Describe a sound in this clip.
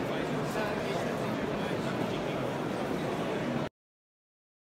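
Several men talk among a murmuring crowd in a large echoing hall.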